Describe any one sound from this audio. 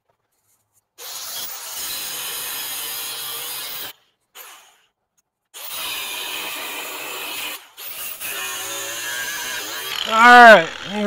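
An angle grinder whines as it cuts into metal.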